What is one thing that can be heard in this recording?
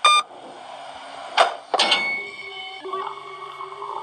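A heavy door creaks open in a game.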